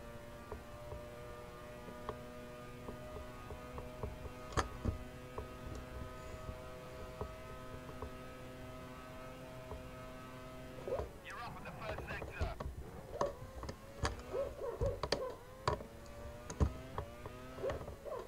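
A racing car engine screams at a steady high pitch, then drops sharply and revs up again.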